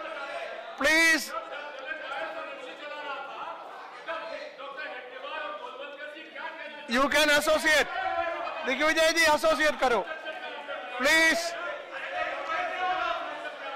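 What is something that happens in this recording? Many men talk and shout over one another in a large echoing hall.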